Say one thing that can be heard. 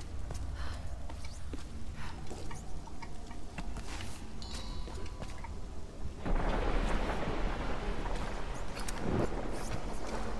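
Footsteps scuff over stone and wooden planks.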